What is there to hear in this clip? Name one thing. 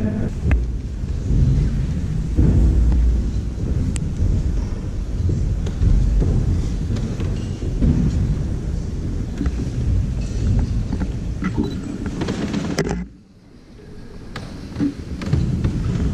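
A crowd of people murmurs softly in a large echoing hall.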